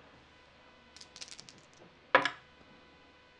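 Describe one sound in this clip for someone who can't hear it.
Dice rattle and clatter onto a soft mat.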